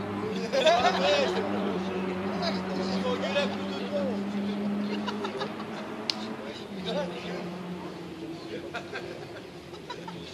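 Spectators chatter faintly in the distance outdoors.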